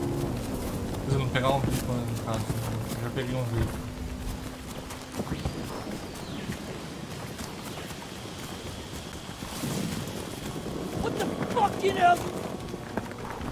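A young man talks casually into a microphone, close by.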